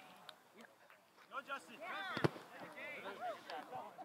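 A soccer ball is kicked with a dull thump.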